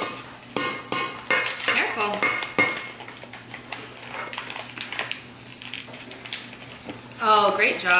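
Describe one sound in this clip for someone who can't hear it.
Flour pours and rustles into a metal bowl.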